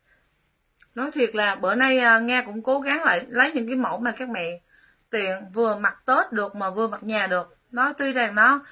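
A young woman speaks calmly and close up.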